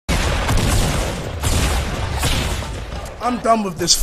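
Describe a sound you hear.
Gunfire from a video game crackles loudly.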